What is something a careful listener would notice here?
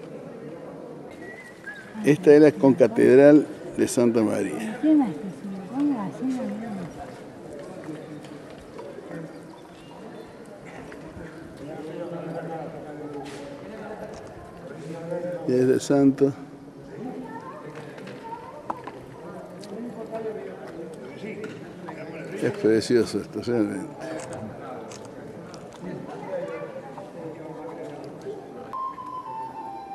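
Adults talk nearby outdoors, their voices mixing.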